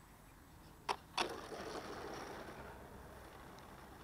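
A small model plane scrapes and skids along the pavement.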